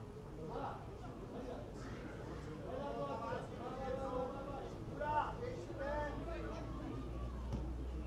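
Spectators in a crowd shout and cheer nearby.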